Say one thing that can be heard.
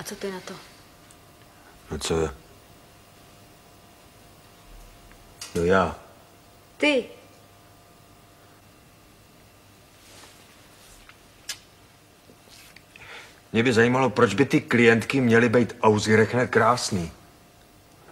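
A man speaks quietly and earnestly, close by.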